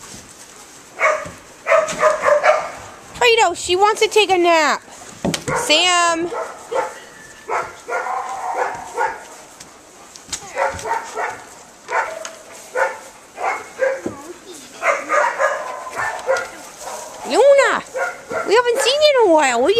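Several dogs bark in short bursts close by.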